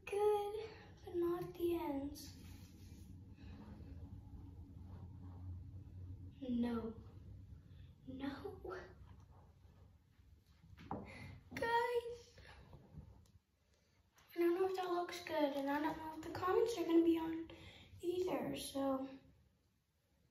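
A young girl talks close by, with lively animation.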